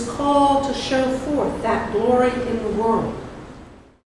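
A middle-aged woman sings a slow line through a microphone.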